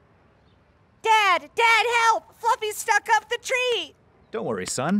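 A boy speaks in a high, animated voice.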